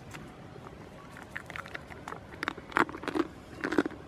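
A goat crunches and chews a snack close by.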